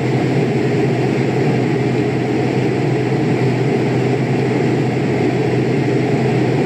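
Jet engines drone steadily in flight.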